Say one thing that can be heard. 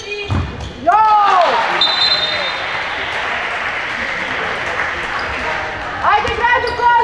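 A crowd of young spectators cheers loudly.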